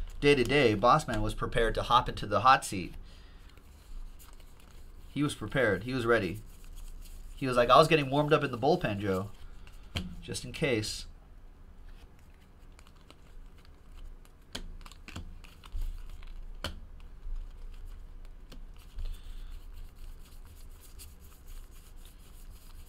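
Trading cards flick and rustle softly as they are shuffled by hand.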